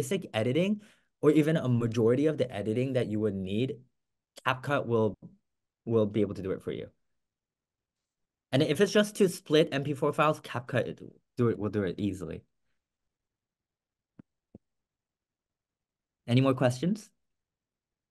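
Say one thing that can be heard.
A young man talks with animation over an online call, close to the microphone.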